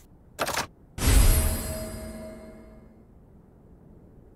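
A loud item-combining sound with a deep boom rings out and fades.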